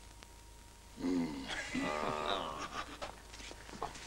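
A group of men sing together with animation.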